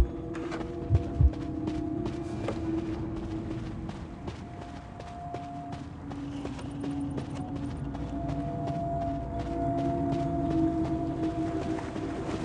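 Footsteps patter quickly on wooden boards.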